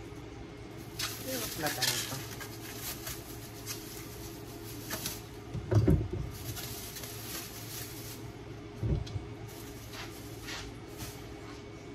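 A thin plastic bag crinkles and rustles in someone's hands.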